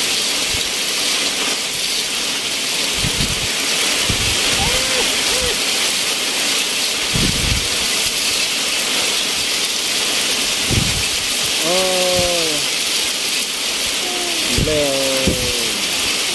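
Wind gusts blow through tall grass.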